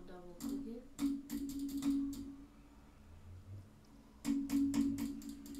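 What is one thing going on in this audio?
Keys clatter rapidly on a keyboard.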